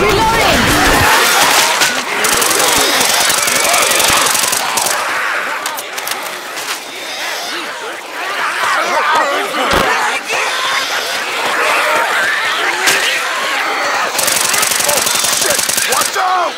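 Zombies snarl and growl close by.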